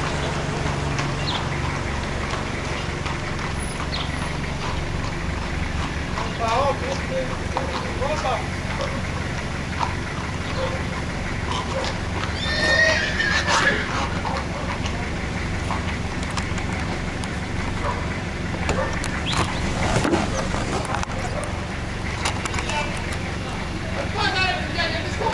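Horse hooves clop slowly on a paved street.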